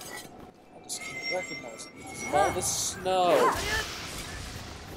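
A glowing attack crackles and rings with sweeping electronic tones.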